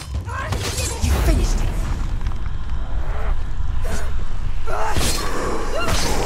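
A blade slashes through the air in sharp swipes.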